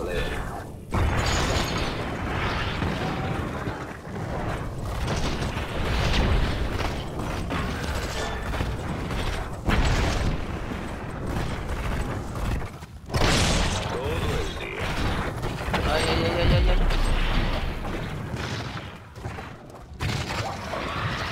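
Game weapons fire and blast in rapid bursts.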